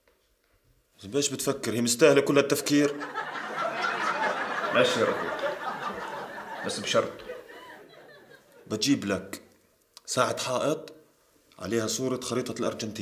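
A young man speaks calmly and earnestly, close by.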